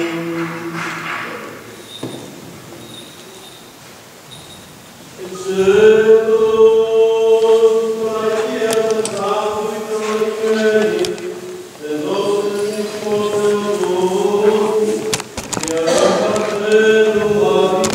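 A group of voices sings a slow, sustained chant in a large echoing space.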